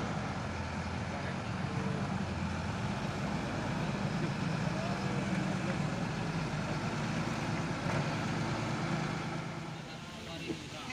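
A truck engine rumbles and strains through deep mud.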